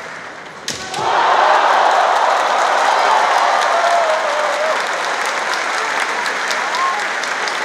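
A crowd in a large hall cheers loudly.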